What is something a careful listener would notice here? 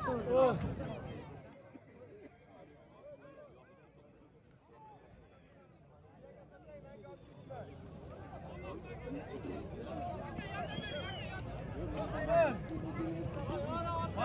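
Many horses trample and scuffle on dusty ground.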